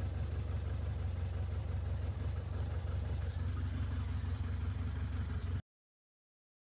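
A small plane's engine drones steadily inside the cabin.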